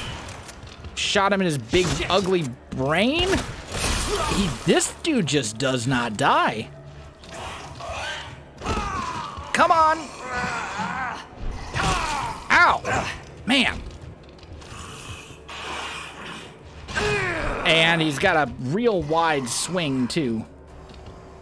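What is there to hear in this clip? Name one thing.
A monster growls and shrieks.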